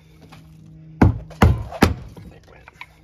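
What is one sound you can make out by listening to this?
A hammer bangs sharply on metal several times.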